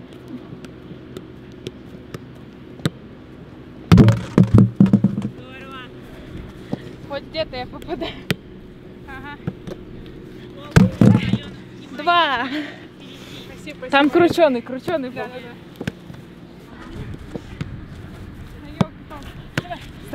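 A football is kicked with sharp thuds, again and again.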